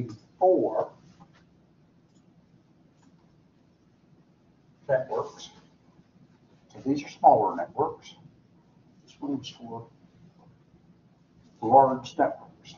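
An elderly man speaks calmly in short phrases.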